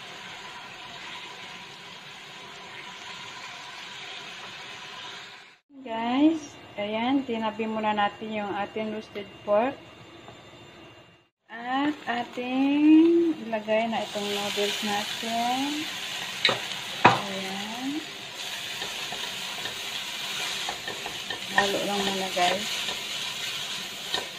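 Food sizzles as it fries in a wok.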